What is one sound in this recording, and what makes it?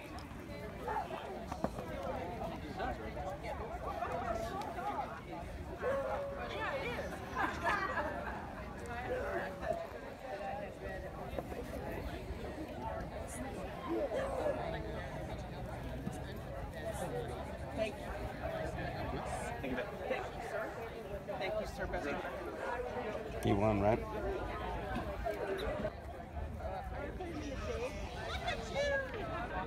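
Men and women chat in a murmur nearby outdoors.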